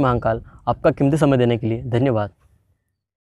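A young man speaks close to the microphone, with animation.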